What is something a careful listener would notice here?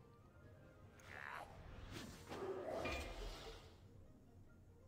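Soft magical whooshing effects play.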